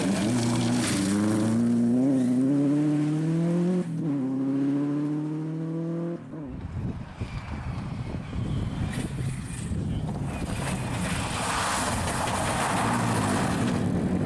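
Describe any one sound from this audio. Gravel sprays and crunches under a car's spinning tyres.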